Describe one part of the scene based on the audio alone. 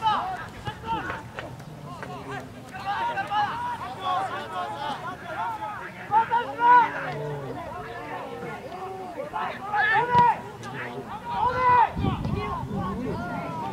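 Many young men shout and call out to each other outdoors.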